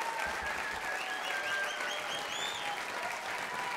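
Audience members whistle loudly.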